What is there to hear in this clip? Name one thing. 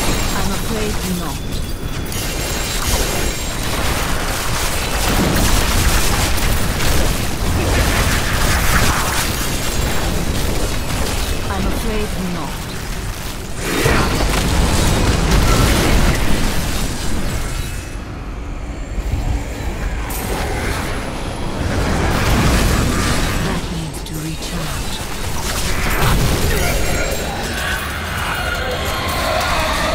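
Spells and magic blasts crash and boom in a frantic fight.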